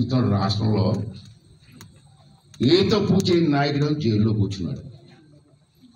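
A middle-aged man speaks forcefully into microphones close by.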